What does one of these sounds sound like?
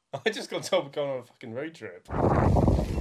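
A young man speaks calmly, close to a microphone.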